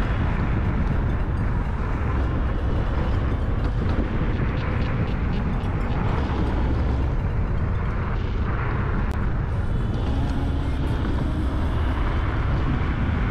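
Wind roars loudly against a motorcycle rider's helmet.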